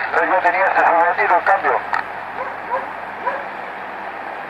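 A voice speaks through a small radio loudspeaker, thin and muffled.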